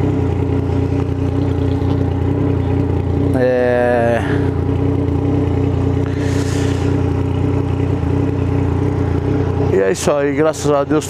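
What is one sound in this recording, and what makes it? A motorcycle engine idles steadily close by.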